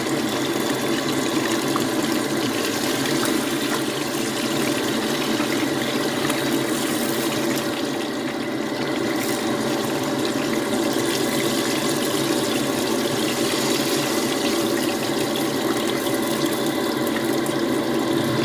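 A whole fish sizzles and crackles in hot oil.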